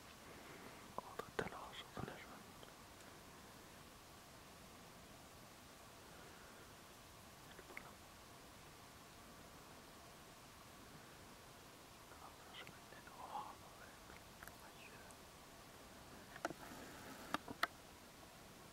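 A beaver gnaws and crunches on a branch at close range.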